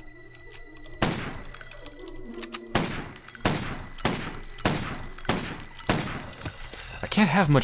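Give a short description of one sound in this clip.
Gunshots ring out one after another.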